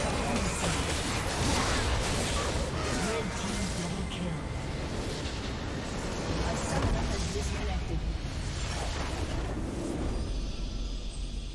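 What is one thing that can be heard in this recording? Game battle effects crackle, clash and boom rapidly.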